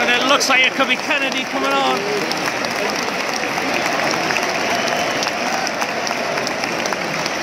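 A large stadium crowd murmurs and chatters.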